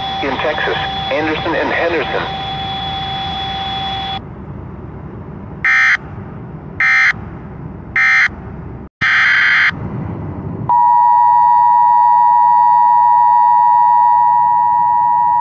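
A radio stream plays through a phone speaker.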